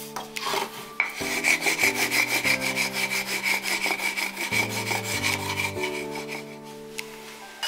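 Sandpaper rubs back and forth across wood.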